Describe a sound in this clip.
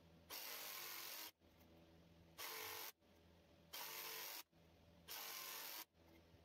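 A jigsaw buzzes as it cuts through wood in short bursts.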